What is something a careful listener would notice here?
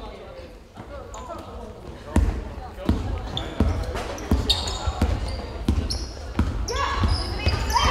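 Sneakers squeak sharply on a hard court.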